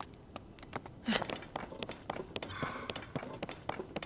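Quick footsteps patter over rock.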